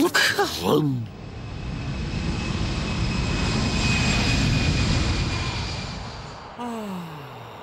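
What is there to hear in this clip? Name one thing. A jet airliner roars loudly as it takes off.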